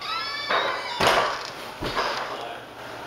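A young man shifts on a leather sofa with a creak.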